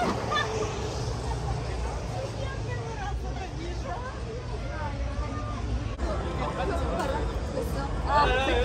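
Young women laugh and talk excitedly close by.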